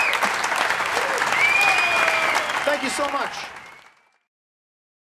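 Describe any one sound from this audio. An acoustic guitar is strummed.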